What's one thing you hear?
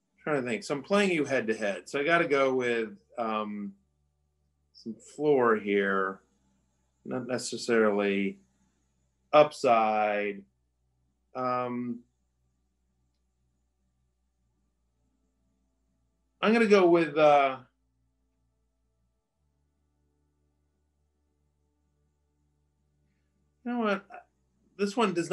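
A man talks with animation into a microphone, in bursts with pauses.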